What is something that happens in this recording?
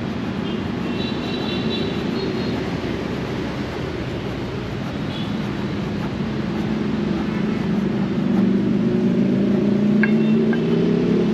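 A steady low rumble of city traffic fills the air outdoors.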